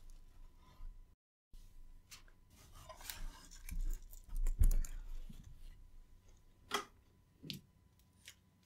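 Metal parts clink and knock together as they are handled.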